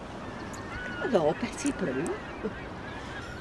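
A middle-aged woman speaks warmly, close by.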